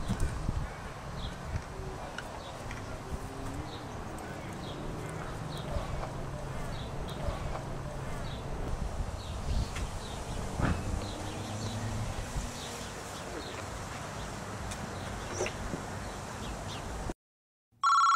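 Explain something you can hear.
Light wind blows outdoors.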